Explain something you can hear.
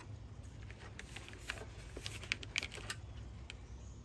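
Rubber hoses rustle and tap as hands move them.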